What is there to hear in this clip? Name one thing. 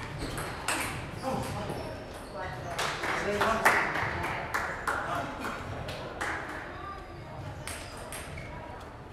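A table tennis ball clicks sharply back and forth off paddles and a table in a large echoing hall.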